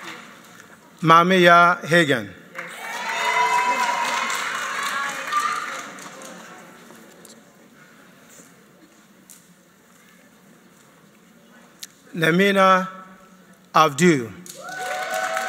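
A man announces names in a large echoing hall.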